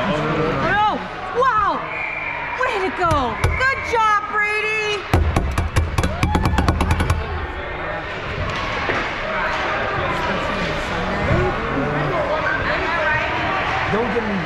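Children shout in high voices in an echoing rink.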